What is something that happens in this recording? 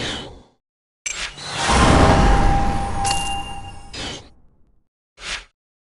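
A jingle rings out as points are awarded.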